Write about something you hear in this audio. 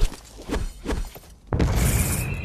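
A sword strikes with sharp clanging hits.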